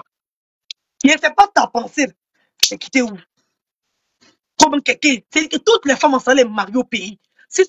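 A woman speaks close to the microphone with animation, in short bursts.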